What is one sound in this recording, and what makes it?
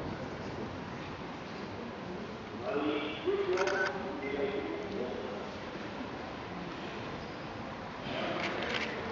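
A crowd of people murmurs and chatters outdoors.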